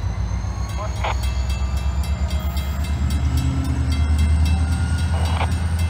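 A railway crossing bell clangs rapidly and steadily.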